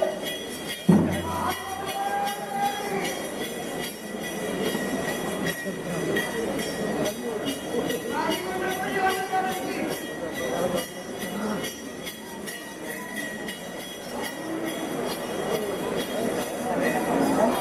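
A crowd of men talks and murmurs close by.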